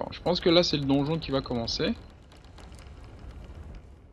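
Heavy wooden doors creak open.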